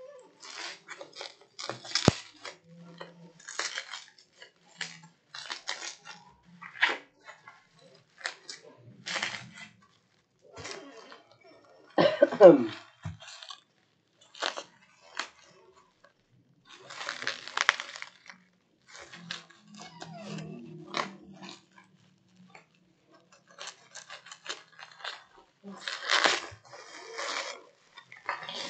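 Plastic bubble wrap crinkles and rustles as it is handled, close by.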